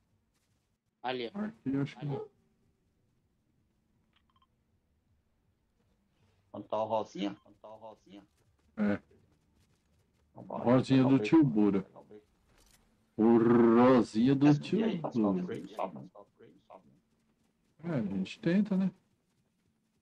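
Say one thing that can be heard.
A middle-aged man talks with animation into a close microphone, in bursts.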